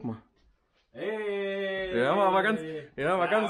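A man speaks cheerfully nearby.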